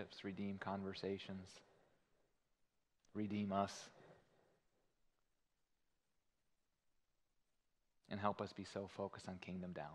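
A man speaks calmly and earnestly into a microphone, pausing between phrases.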